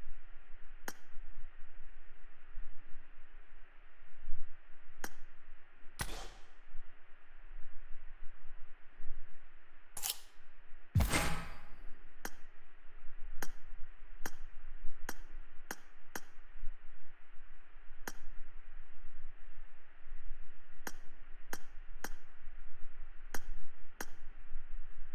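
Short, sharp menu clicks sound now and then.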